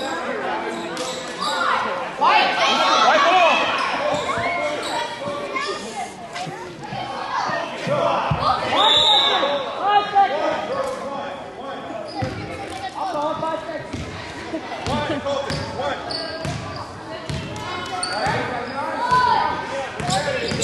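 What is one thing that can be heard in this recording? A crowd of children and adults chatters and cheers nearby in an echoing gym.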